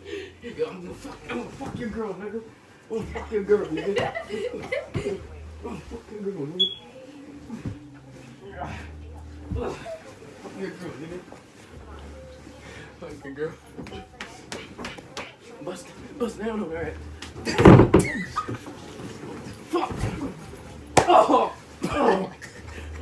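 Bodies thump and tumble onto a bed.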